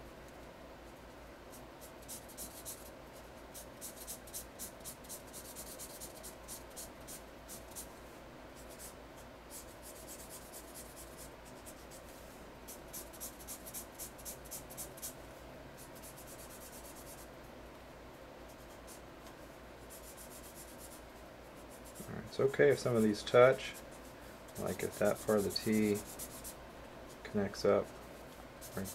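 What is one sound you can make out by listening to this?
A felt-tip marker scratches and squeaks in quick strokes across paper.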